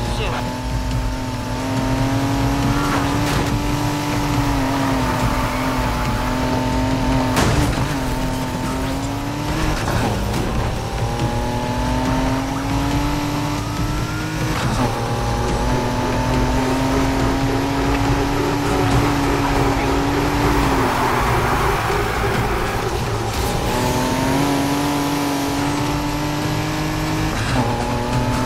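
A racing car engine roars at high revs, shifting gears as it speeds along.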